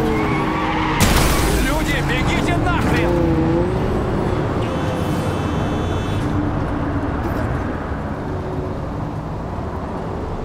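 Tyres screech as a car skids and spins.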